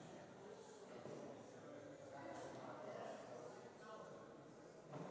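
A crowd of men and women chat at a distance in a large echoing hall.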